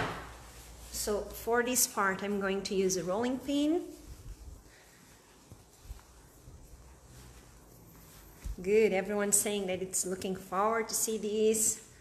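Hands knead and press soft dough with faint dull thumps.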